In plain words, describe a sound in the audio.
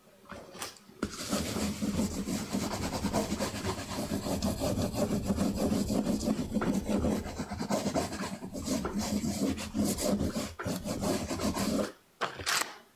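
A baren rubs in fast circles on paper over a woodblock.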